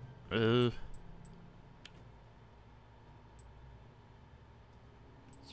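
Soft electronic clicks sound now and then.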